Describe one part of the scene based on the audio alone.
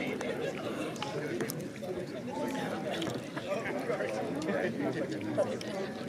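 A crowd of people chatter outdoors in the distance.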